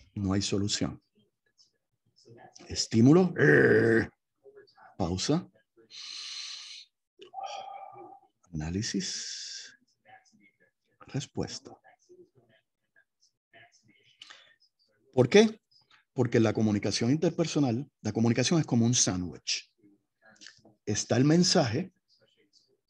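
An older man speaks calmly over an online call, in short bursts with pauses.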